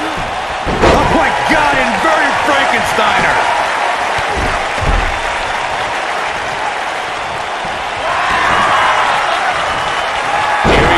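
Bodies slam onto a ring mat with heavy thuds.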